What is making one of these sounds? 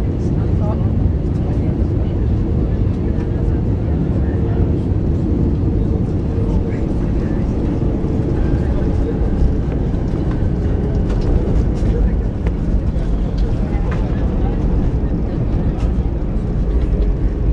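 An airliner's wheels rumble and rattle over the runway.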